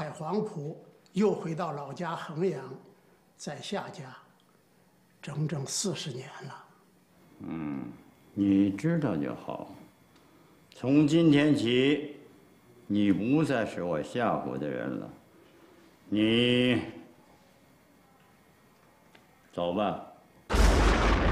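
An elderly man speaks slowly and gravely.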